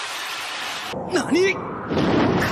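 A boy cries out in surprise, heard close.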